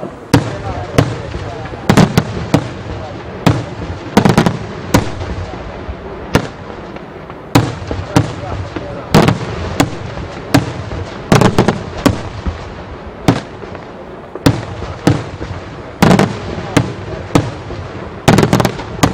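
Fireworks burst overhead with loud, irregular bangs that echo away.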